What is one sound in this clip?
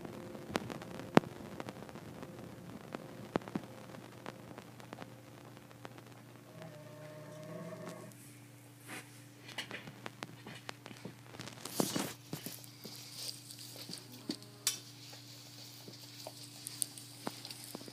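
A dog laps water from a metal bowl.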